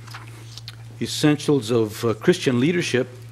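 A middle-aged man speaks clearly through a microphone.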